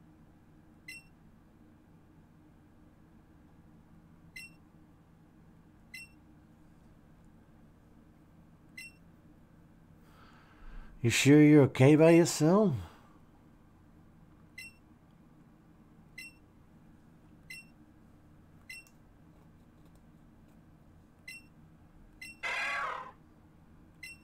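A short electronic blip sounds every second or two.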